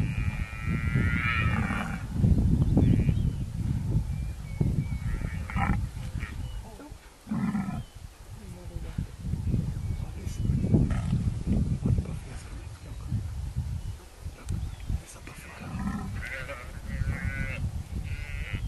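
Wind blows across an open field.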